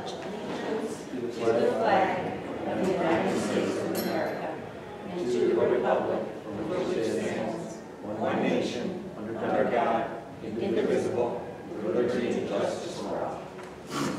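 A group of men and women recite together in unison, in slow, even phrases.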